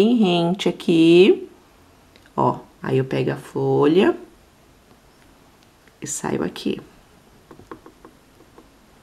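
Yarn rustles softly as a needle pulls it through crochet stitches.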